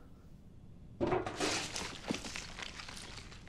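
A metal box lid creaks open with a clatter.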